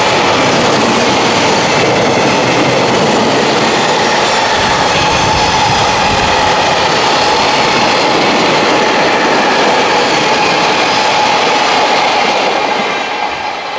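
A long freight train rumbles past close by, its wheels clattering and squealing on the rails.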